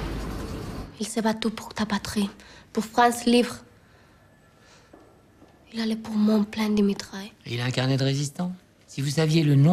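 A young woman speaks calmly and quietly, close by.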